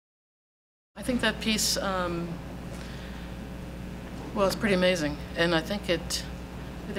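A middle-aged woman speaks calmly into a microphone.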